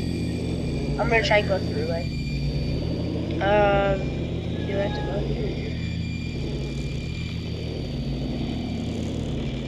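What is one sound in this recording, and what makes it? A television buzzes with a low, steady electrical hum.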